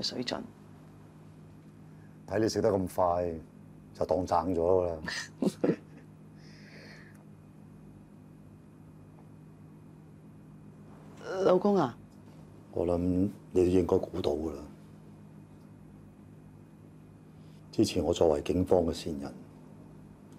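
A middle-aged man speaks softly and warmly, close by.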